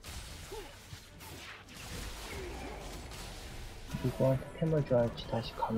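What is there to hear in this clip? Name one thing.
Magic spells burst and crackle during a fight.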